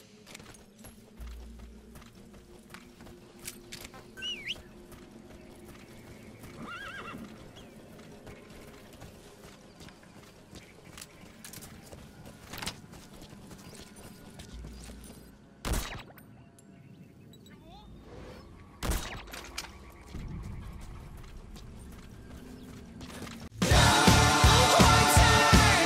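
Footsteps thud quickly through grass.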